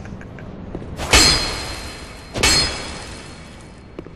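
A heavy iron gate clangs twice and rings out.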